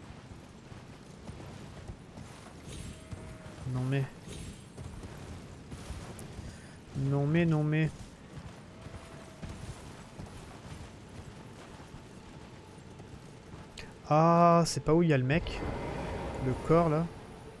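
A horse's hooves clop steadily on stone.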